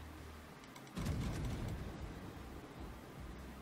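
Heavy naval guns fire with a deep, rolling boom.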